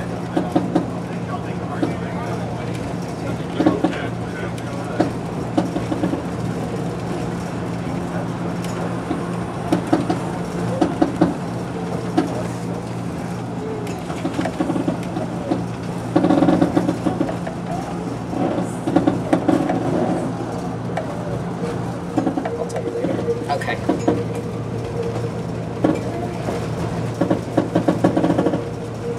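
Train wheels clack over rail joints.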